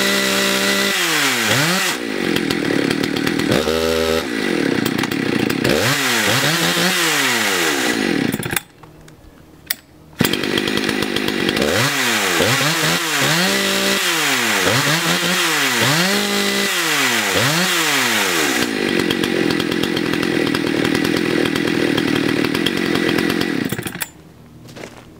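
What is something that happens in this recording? A two-stroke chainsaw revs up and down sharply.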